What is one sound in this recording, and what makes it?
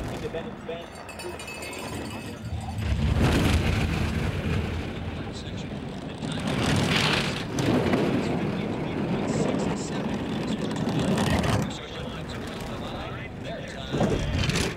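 A bobsled rumbles and roars along an icy track.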